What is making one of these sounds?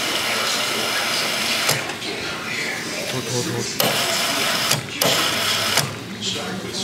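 Soda pours from a fountain dispenser and fizzes into a cup.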